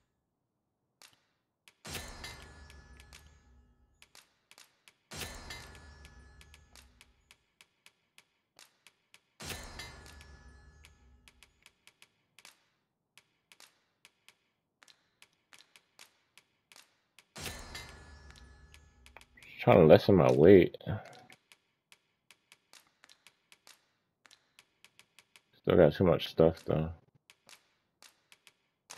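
Soft menu clicks tick repeatedly.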